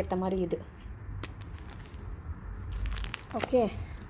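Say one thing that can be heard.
A plastic-wrapped package crinkles as hands handle it.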